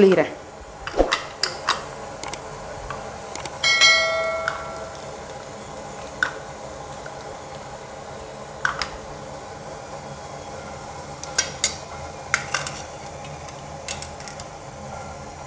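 A metal press creaks and clanks.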